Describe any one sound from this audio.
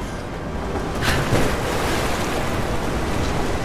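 Water splashes loudly as a body plunges into it.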